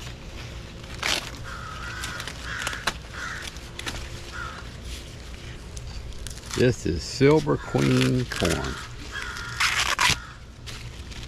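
Corn husks rustle and tear as they are peeled back.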